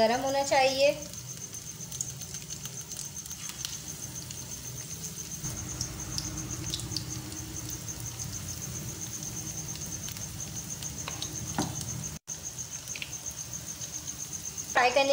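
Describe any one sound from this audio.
Chicken sizzles and crackles as it fries in hot oil.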